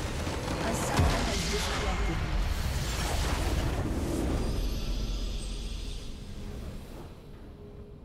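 A crystal shatters in a loud magical blast that rumbles and slowly fades.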